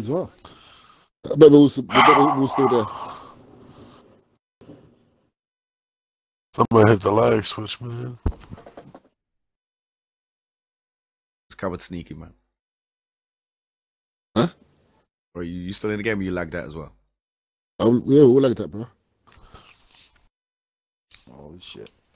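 A man speaks into a close microphone in short, lively bursts with pauses between them.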